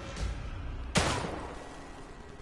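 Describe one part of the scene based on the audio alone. A gun fires a single loud shot that rings out briefly.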